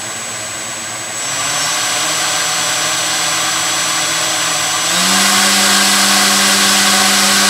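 A small electric motor with a propeller whirs steadily and speeds up in steps.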